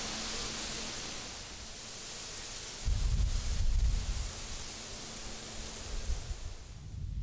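Wind blows through reeds with a steady rustling hiss.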